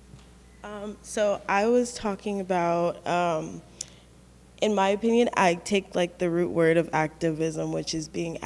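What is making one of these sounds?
A young woman speaks with animation through a microphone.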